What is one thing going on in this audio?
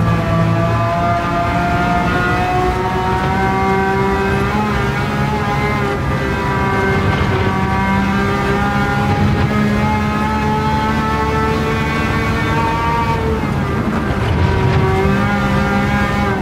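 A race car engine roars loudly, its pitch rising and falling as it revs through gear changes.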